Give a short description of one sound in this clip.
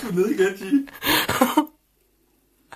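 A young man talks with his mouth full, close by.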